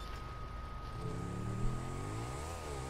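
A motorcycle engine revs up as the bike accelerates.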